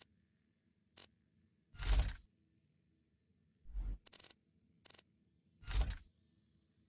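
Short game menu sounds whoosh and click as items are selected.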